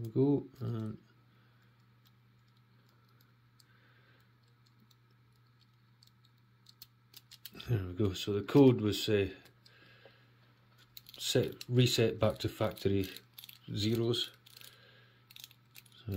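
Small plastic dials of a combination lock click as they are turned.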